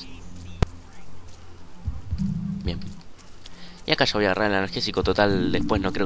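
Footsteps shuffle over leaves and undergrowth.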